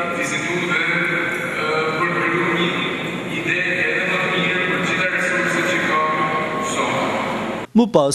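A man speaks with animation into a microphone, heard through a loudspeaker.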